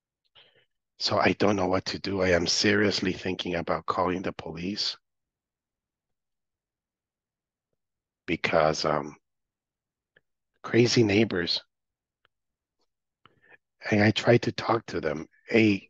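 A man speaks calmly over an online call, heard through a computer speaker.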